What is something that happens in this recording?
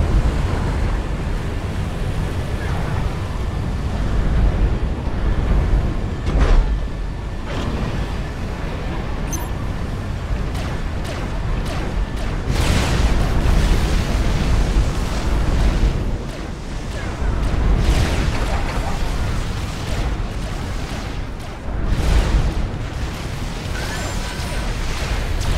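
Explosions boom and rumble throughout.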